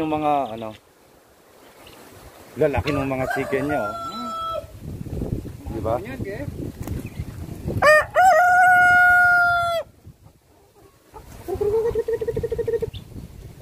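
Roosters crow loudly and close by, one after another.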